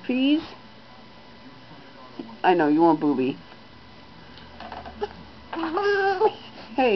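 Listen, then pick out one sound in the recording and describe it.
A baby cries and whines close by in short bursts.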